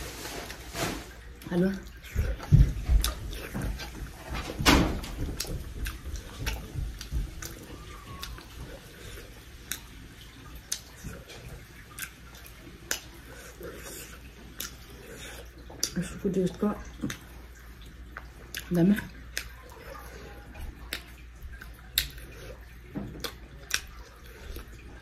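A young woman chews and smacks her lips close to the microphone.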